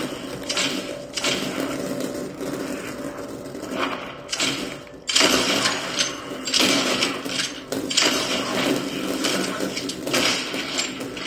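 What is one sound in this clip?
Rifle shots crack from a television in a room.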